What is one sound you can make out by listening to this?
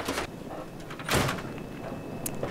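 A metal door scrapes open.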